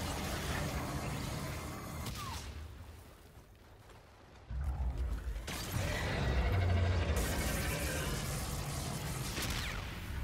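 Dual energy pistols fire zapping shots in a video game.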